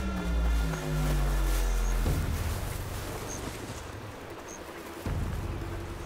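Footsteps rustle through thick undergrowth.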